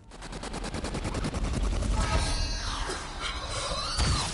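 A magical energy burst whooshes and crackles loudly.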